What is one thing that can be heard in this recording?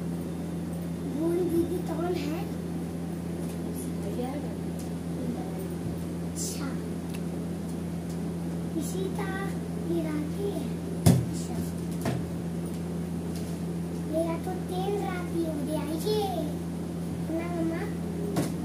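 A woman speaks softly nearby.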